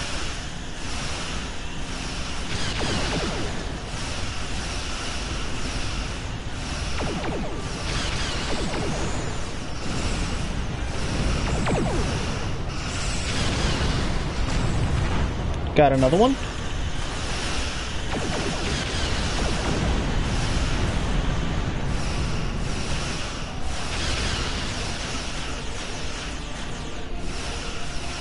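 Laser weapons fire and zap in rapid bursts.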